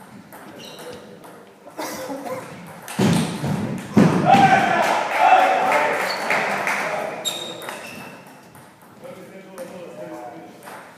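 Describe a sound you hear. A table tennis ball clicks back and forth between paddles and the table in an echoing hall.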